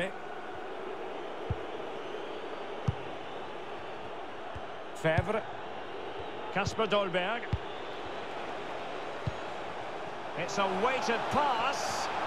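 A large crowd murmurs and chants steadily in a big open stadium.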